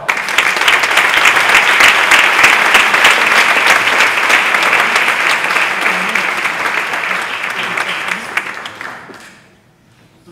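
An audience applauds loudly in a large hall, then fades.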